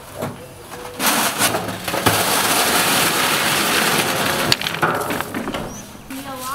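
A wheelbarrow rolls and rattles.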